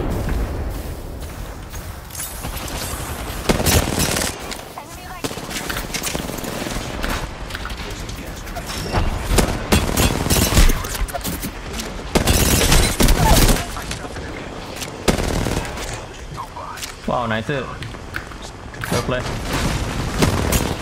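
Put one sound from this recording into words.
Rapid gunfire bursts crack loudly.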